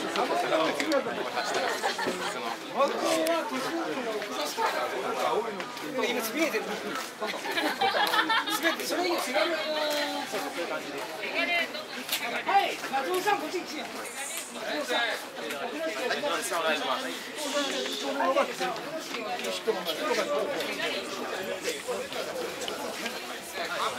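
A group of men talk and laugh together close by.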